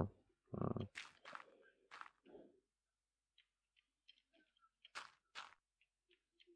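Blocks are placed one after another with soft, crunchy thuds.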